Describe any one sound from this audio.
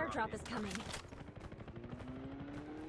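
Footsteps run over dirt.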